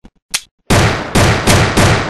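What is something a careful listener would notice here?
A pistol is reloaded with a metallic click.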